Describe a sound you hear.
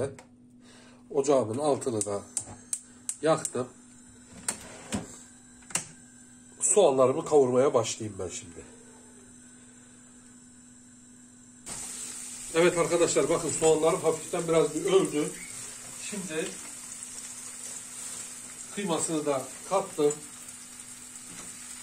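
Onions sizzle softly in a frying pan.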